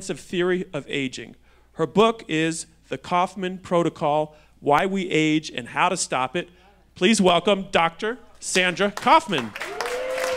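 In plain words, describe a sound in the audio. A man speaks calmly into a microphone to an audience.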